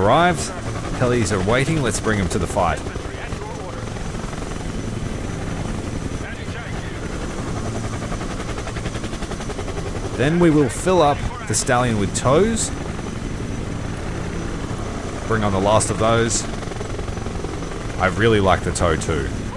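A helicopter's rotor thuds steadily nearby.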